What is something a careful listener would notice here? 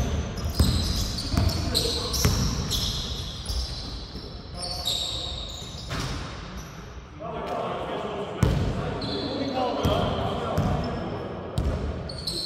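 Sneakers squeak on a hardwood court in a large echoing hall.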